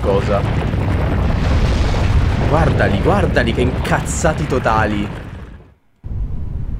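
Explosions roar and rumble with rocks crashing.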